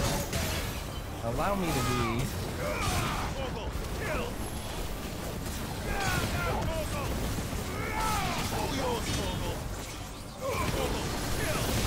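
Fiery blasts burst and roar.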